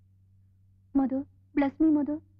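A young woman speaks softly in a large echoing hall.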